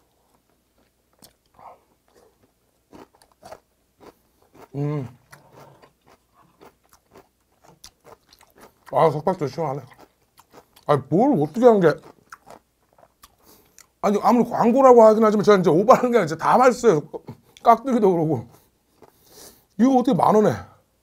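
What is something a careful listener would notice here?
A man slurps and chews food close to a microphone.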